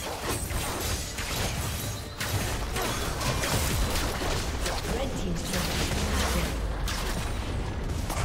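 Game spell effects crackle and burst rapidly in a busy fight.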